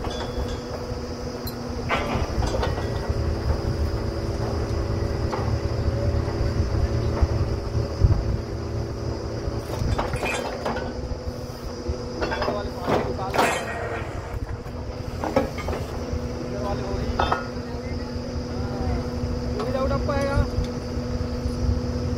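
A drilling rig's engine rumbles steadily close by.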